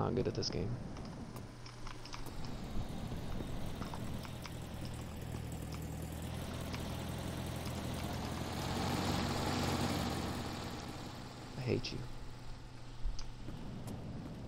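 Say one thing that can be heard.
A car engine rumbles steadily as a car drives up and passes close by.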